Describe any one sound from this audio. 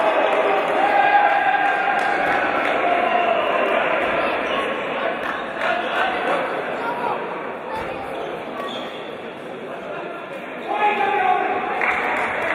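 Players' shoes squeak on a hard floor in a large echoing hall.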